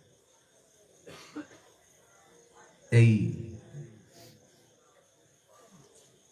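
An elderly man speaks into a microphone in short bursts, heard through a loudspeaker.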